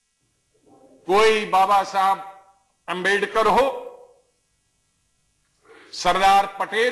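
A second man speaks firmly into a microphone.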